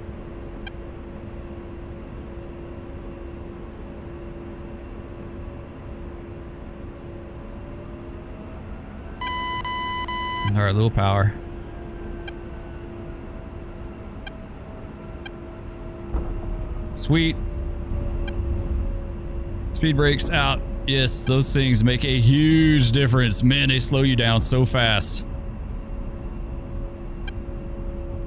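A jet engine whines steadily.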